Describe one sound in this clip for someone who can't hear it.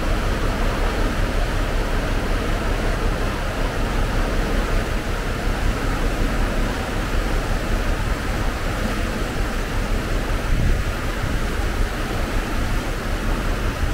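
A boat's engine drones steadily.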